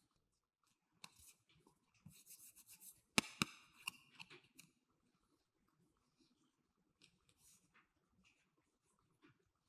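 A stiff card rustles and flexes between fingers.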